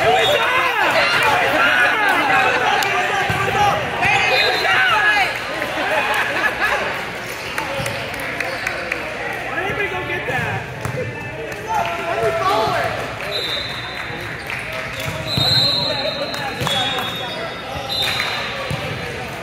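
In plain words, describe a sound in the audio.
Several men and women shout and chatter loudly in a large echoing hall.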